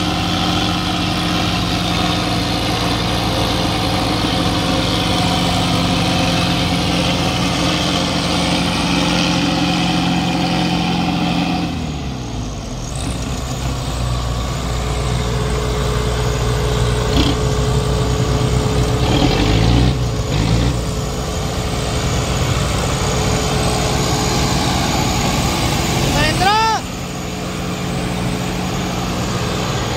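Tractor wheels churn and spin in loose sand.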